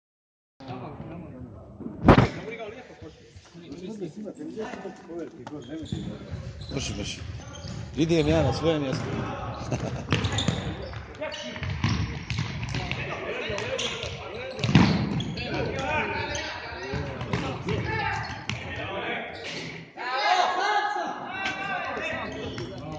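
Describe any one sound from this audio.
Spectators talk and cheer loudly in an echoing indoor hall.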